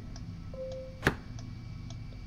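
A small wooden mechanism clicks sharply.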